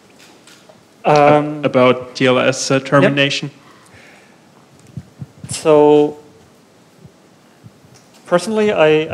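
A man speaks into a microphone, heard through a loudspeaker in a room.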